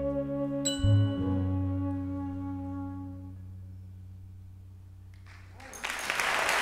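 A band ends a tune on a long ringing chord that slowly fades.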